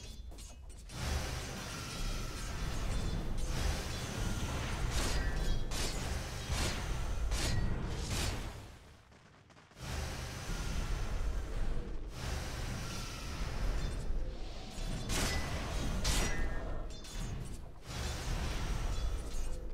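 Weapons clash and strike in quick blows.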